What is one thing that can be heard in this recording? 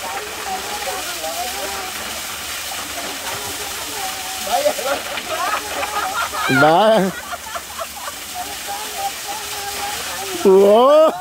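A small waterfall splashes steadily onto rock close by.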